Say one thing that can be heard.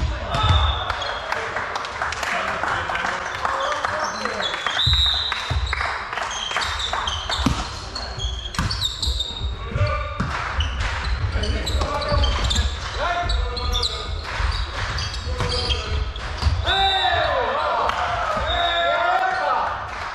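Young men and women shout to each other in a large echoing hall.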